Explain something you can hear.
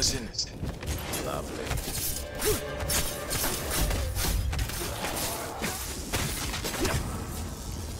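A blade hacks wetly into a body several times.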